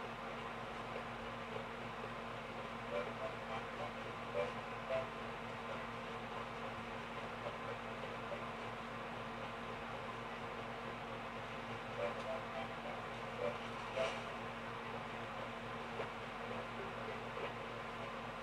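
Video game music and sound effects play through a television speaker.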